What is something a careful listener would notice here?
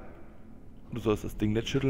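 A man speaks close to a headset microphone.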